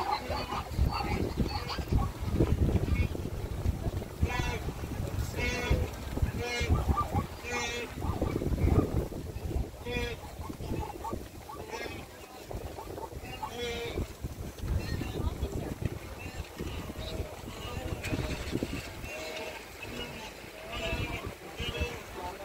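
Wildebeest grunt and bellow loudly in a herd.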